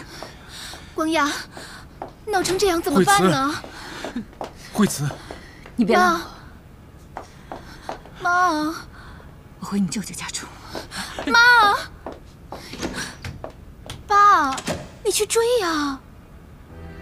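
A young woman speaks in an upset, pleading voice.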